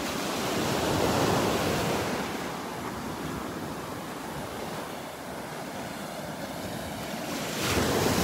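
Small waves wash gently onto the shore.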